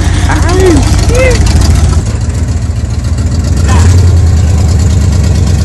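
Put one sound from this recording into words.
An off-road vehicle's engine rumbles and revs loudly up close.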